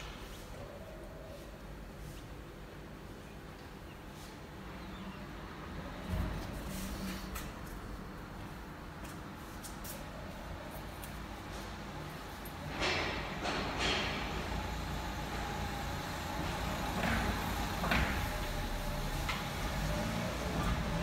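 A cloth wipes and rubs softly across a car's smooth surface.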